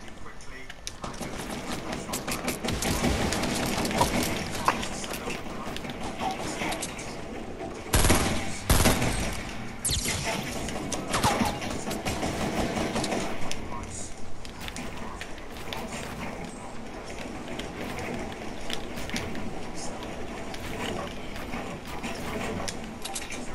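Wooden walls and ramps clatter rapidly into place.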